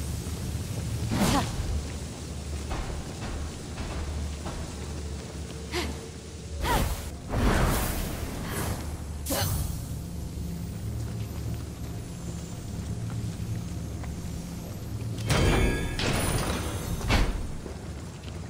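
Magical energy whooshes and swells in sharp bursts.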